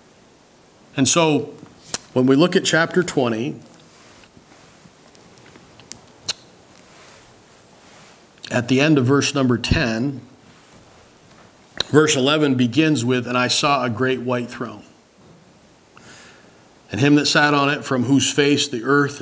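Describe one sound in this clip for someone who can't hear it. An older man speaks slowly and calmly through a microphone, with pauses.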